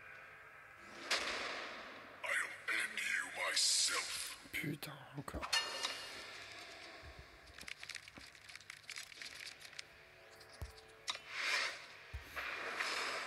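Video game music and sound effects play.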